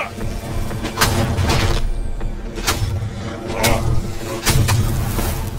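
A blade slashes and strikes flesh with sharp thuds.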